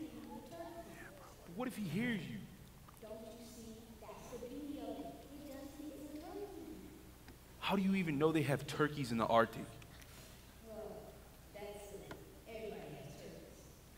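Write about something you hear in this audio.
A woman speaks with animation through a microphone in a large echoing hall.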